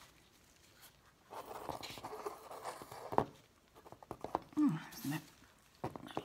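A small tile scrapes and knocks against a table as it is picked up and moved.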